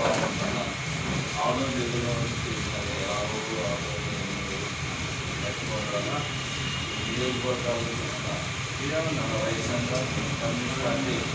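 A middle-aged man speaks steadily to an audience in a room with a slight echo.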